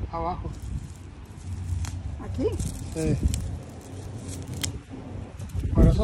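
Dry grass rustles and tears as it is pulled up by hand.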